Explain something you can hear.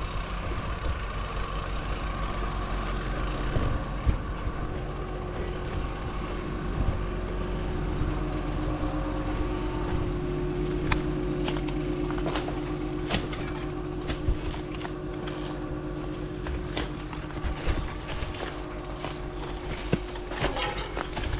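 An excavator engine rumbles and hums nearby.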